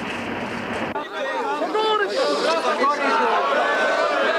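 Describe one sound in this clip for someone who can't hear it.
A crowd of men shouts and cheers close by.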